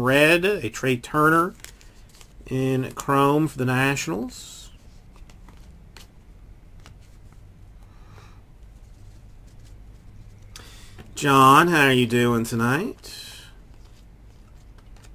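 Trading cards rustle and flick between hands.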